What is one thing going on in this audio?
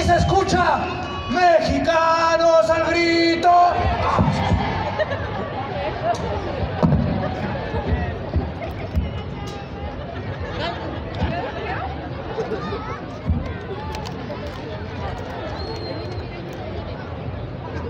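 A large crowd cheers and chatters nearby.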